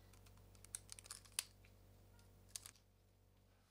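Gloved fingers press and rub tape onto metal with soft crinkling and tapping.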